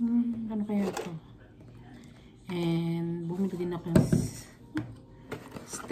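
Cardboard packaging rustles and scrapes.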